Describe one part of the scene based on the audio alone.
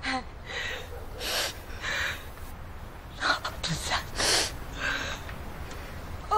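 An elderly woman cries and wails in distress, close by.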